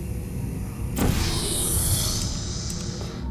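A portal gun fires with a sharp, rushing whoosh.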